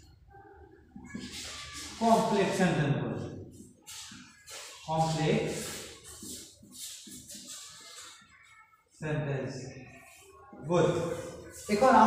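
A man speaks steadily nearby.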